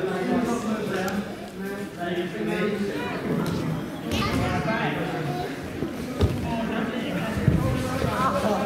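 A man talks calmly nearby in a large echoing hall.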